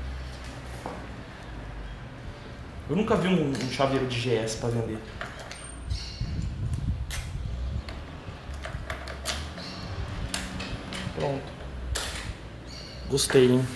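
Small plastic parts click and rattle as a man works on a motorcycle.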